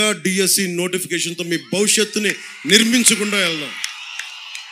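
A man speaks forcefully through a loudspeaker system, his voice echoing outdoors.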